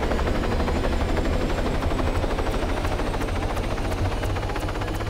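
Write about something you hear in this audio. A helicopter's rotor thuds rapidly and steadily close by.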